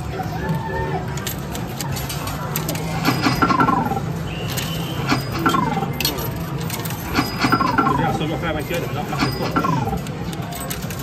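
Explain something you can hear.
An arcade machine plays bright electronic jingles.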